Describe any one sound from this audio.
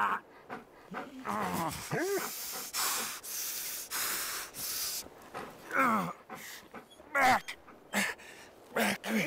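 A man groans and gasps in pain close by.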